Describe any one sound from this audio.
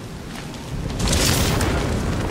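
A cape flaps in rushing wind.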